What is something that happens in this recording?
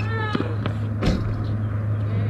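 A tennis racket strikes a ball with a sharp pop.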